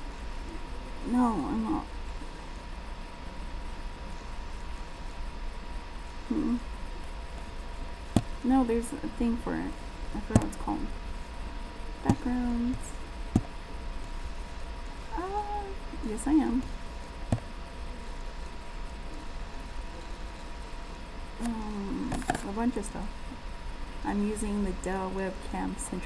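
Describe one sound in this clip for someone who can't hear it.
A woman talks on a phone in short bursts, close by.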